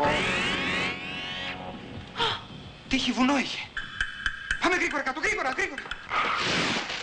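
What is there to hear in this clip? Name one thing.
A young woman cries out in fright, close by.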